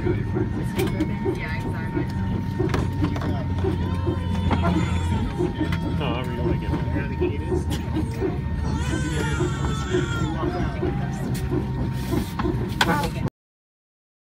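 A jet engine hums steadily nearby.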